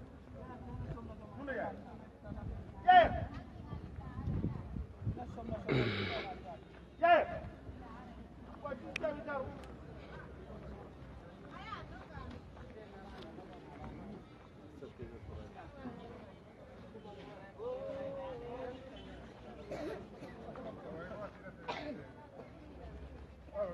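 Men talk casually nearby outdoors.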